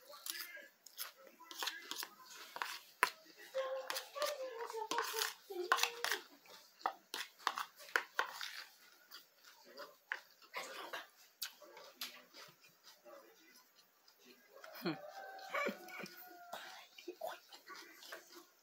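A young man chews and smacks his lips loudly.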